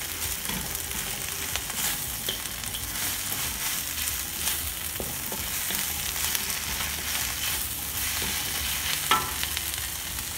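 A spatula scrapes and clatters against a pan.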